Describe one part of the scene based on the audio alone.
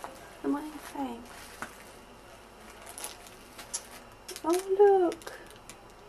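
Bubble wrap crinkles as a packet is pulled out.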